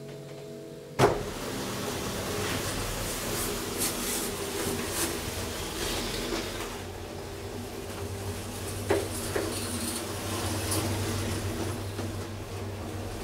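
An elevator motor hums steadily while the car moves.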